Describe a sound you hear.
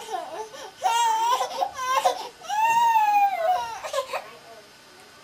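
A baby squeals and babbles loudly.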